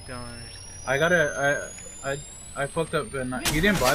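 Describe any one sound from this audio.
A healing device whirs and hums.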